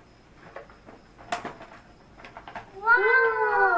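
A plastic toy lid clicks and clatters as it is opened.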